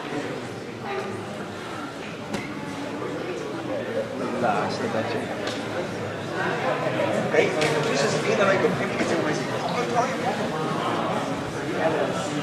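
Young men in the crowd call out and talk in an echoing sports hall.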